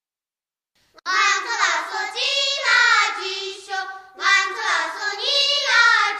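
A woman sings a high, drawn-out melody.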